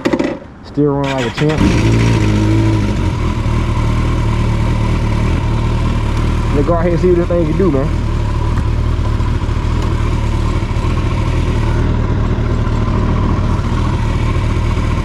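A motorcycle engine starts up and idles with a steady low rumble.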